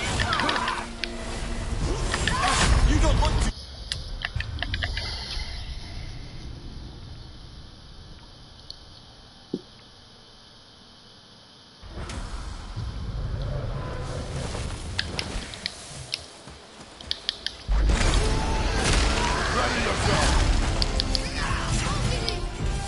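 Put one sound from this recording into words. Heavy blows clash and thud in a fierce fight.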